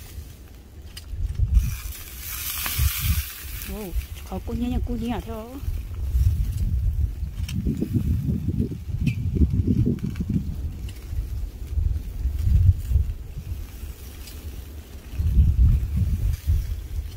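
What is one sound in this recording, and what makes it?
Chicken pieces sizzle on a grill.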